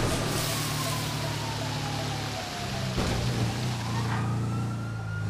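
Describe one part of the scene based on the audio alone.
Water sprays and splashes as a truck drives through it.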